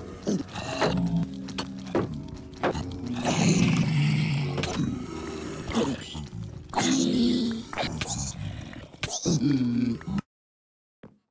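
Zombie creatures grunt and groan close by.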